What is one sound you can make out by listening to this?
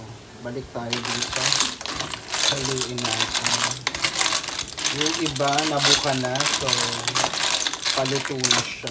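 Clams clatter and knock as a wooden spoon stirs them in a pot.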